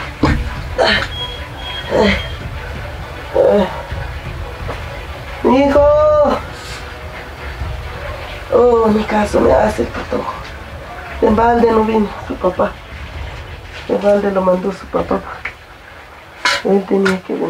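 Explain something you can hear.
An elderly woman prays aloud nearby in a trembling, pleading voice.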